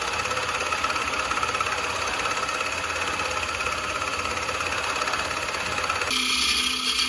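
A hollowing tool scrapes and shaves the spinning wood.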